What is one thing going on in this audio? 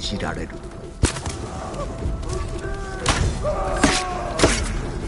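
Swords clash sharply in a fight.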